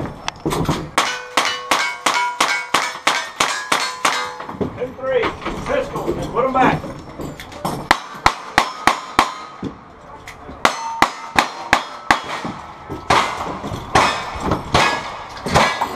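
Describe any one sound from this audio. Steel targets ring when struck.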